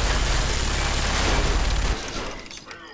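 A heavy gun roars with a burst of crackling explosion noise.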